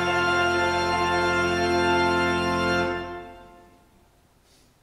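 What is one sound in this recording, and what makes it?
Organ music plays loudly in a large echoing hall and fades out.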